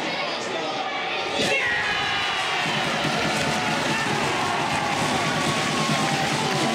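A crowd of spectators cheers and shouts in an echoing rink.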